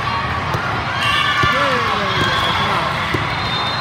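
Young women call out and cheer on the court.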